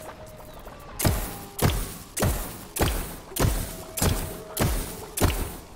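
A video game fireball cannon fires booming shots.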